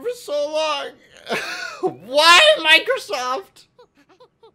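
A young man shouts and exclaims excitedly into a close microphone.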